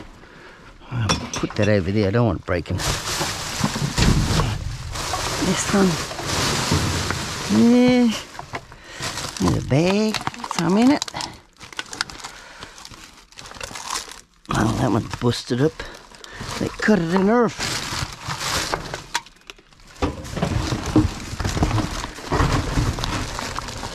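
Plastic bags and wrappers rustle and crinkle up close.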